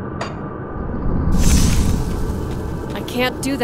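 A magic spell bursts with a whooshing crackle.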